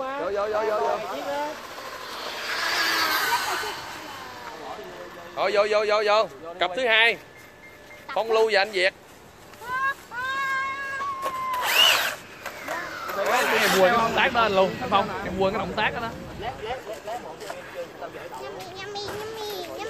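A toy car's electric motor whines as it speeds across pavement, rising and falling in pitch.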